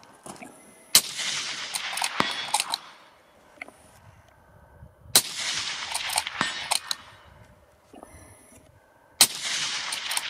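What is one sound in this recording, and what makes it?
A suppressed bolt-action rifle fires sharp shots outdoors.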